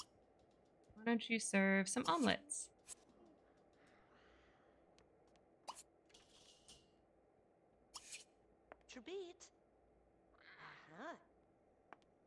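A young woman speaks briefly and calmly into a microphone.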